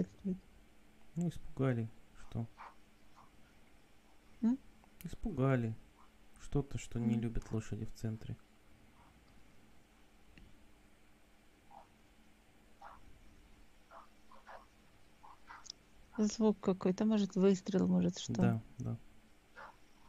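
A man speaks calmly and slowly over an online call.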